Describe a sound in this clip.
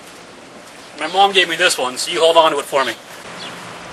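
A man speaks casually close by, outdoors.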